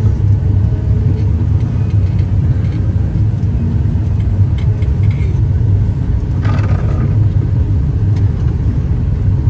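Snow and sleet patter against the cab window.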